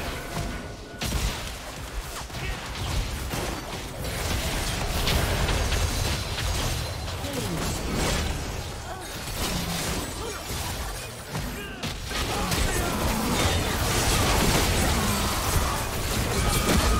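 Magic blasts burst and whoosh.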